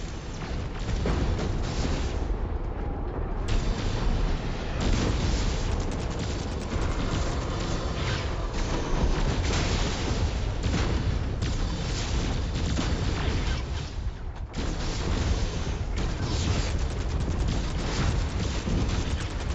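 Heavy mechanical footsteps thud and rumble steadily.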